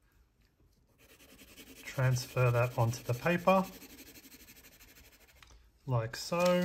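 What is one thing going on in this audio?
A pencil scratches and shades on paper.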